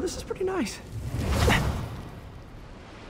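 An explosion booms with a roar of fire.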